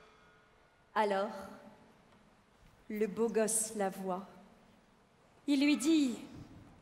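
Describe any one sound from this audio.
A woman sings out loudly through a headset microphone in a large hall.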